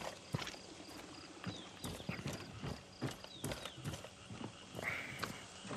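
Footsteps thud on wooden planks.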